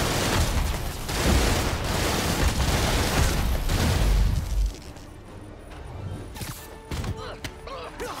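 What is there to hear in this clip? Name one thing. Punches and kicks land with heavy, crackling thuds.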